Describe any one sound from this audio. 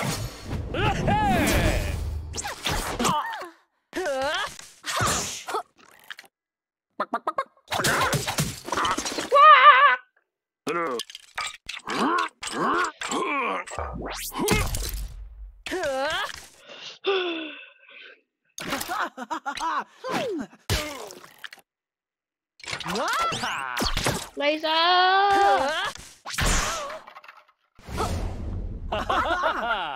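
A young boy talks with animation into a headset microphone.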